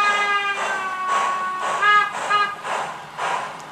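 A model steam locomotive whistles.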